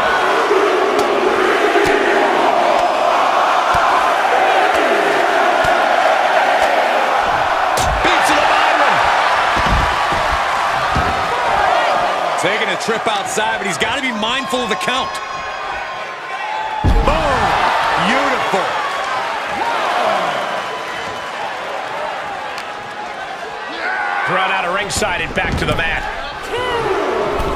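A large crowd cheers and roars.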